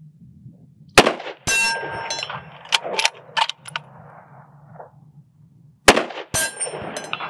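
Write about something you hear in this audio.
A rifle fires loud sharp shots outdoors that echo off the hills.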